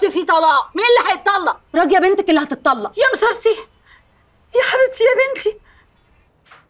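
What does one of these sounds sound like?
A middle-aged woman speaks loudly and with agitation close by.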